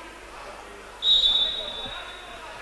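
A referee's whistle blows once, sharp and short.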